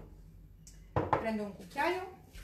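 A woman speaks close by with animation.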